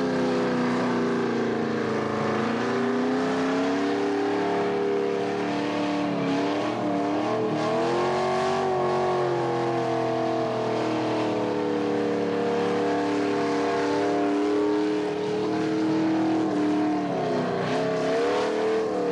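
Tyres screech as they spin on tarmac.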